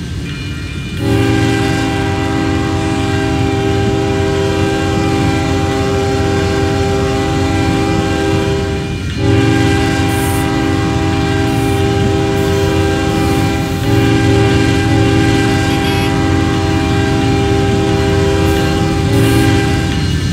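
A train horn blares long and loud.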